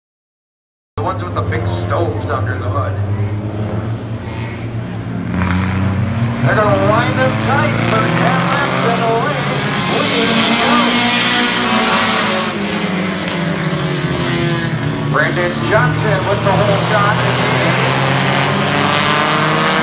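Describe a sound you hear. Several race car engines roar loudly.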